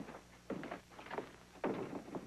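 A door is pushed shut with a thud.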